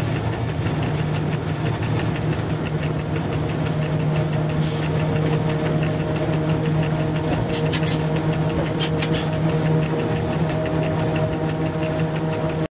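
Train wheels click rhythmically over rail joints.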